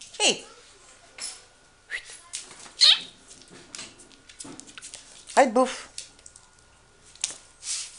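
A dog's paws patter on a wooden floor.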